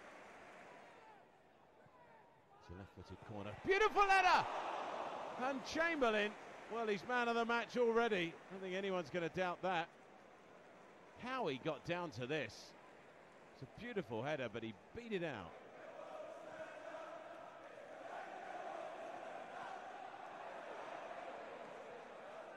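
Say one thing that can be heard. A large crowd roars and chants in a stadium.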